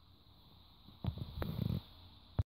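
Footsteps thump across a floor.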